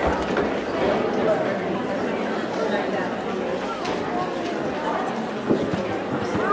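An audience chatters in a large echoing hall.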